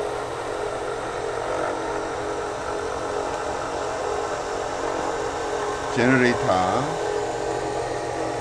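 A small electric motor hums as it drives a homemade belt-driven mini lathe.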